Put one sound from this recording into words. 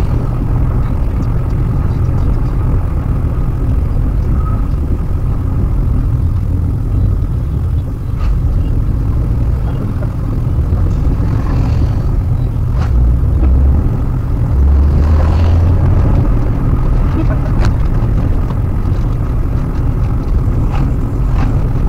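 Tyres roll over a rough road.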